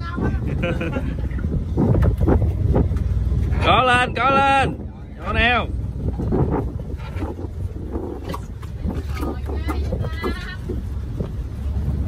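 Water laps against a small boat's hull.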